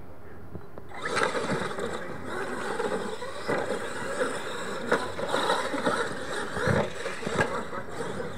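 Small electric motors of radio-controlled trucks whine as they drive over dirt.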